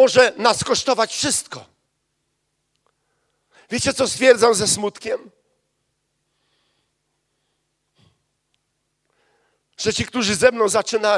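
A middle-aged man speaks with animation into a microphone, in short bursts with pauses.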